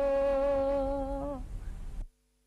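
A woman sings a long, steady held note close by.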